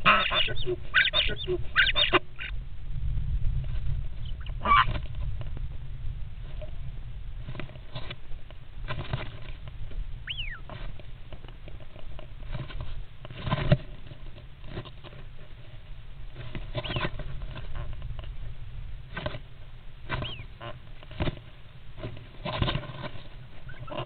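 Birds flutter and scrabble about in a small wooden box.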